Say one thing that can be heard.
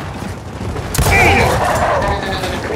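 A gun fires a loud burst.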